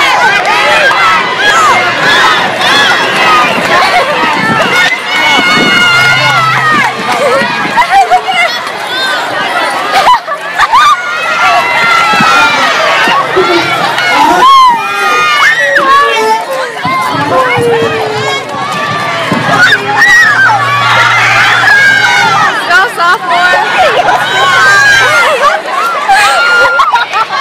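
A crowd of teenagers cheers and shouts outdoors.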